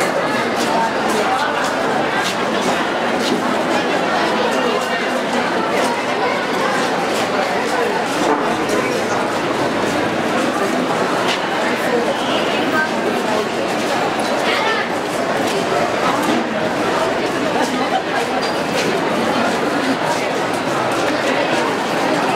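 A crowd of young men and women chatter all around, close by.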